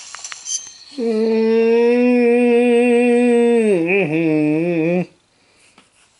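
A loud wavering musical tone plays through a small tinny speaker.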